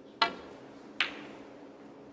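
A snooker ball clicks against another ball on the table.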